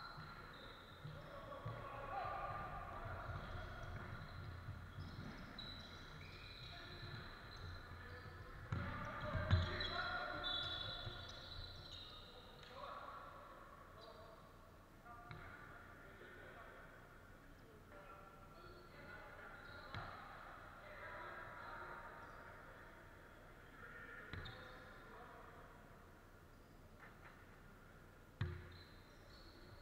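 Sneakers squeak sharply on a wooden floor in a large echoing hall.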